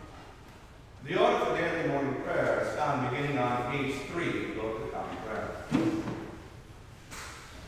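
A man chants in a steady voice through a microphone in an echoing hall.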